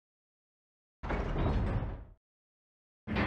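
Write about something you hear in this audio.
A heavy stone mechanism rumbles and shifts.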